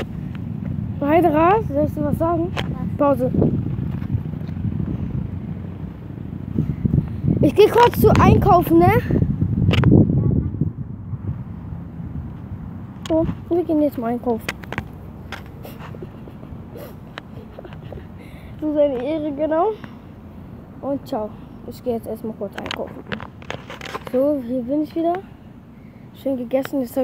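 A young boy talks close by with animation.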